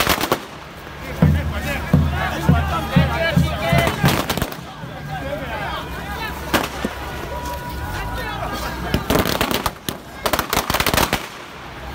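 Firecrackers crackle and bang in rapid bursts.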